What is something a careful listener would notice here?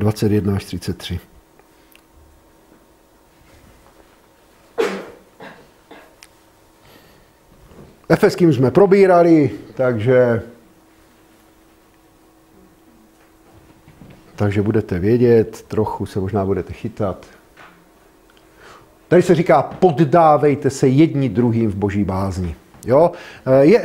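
A middle-aged man speaks calmly in a room that echoes a little, with pauses between his phrases.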